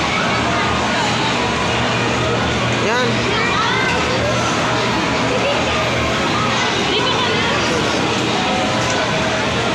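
A crowd of children and adults chatters all around in a large echoing hall.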